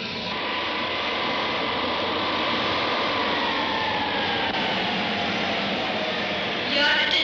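A jet engine whines as an airliner taxis.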